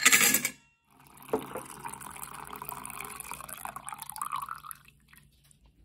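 Coffee pours and splashes into a cup.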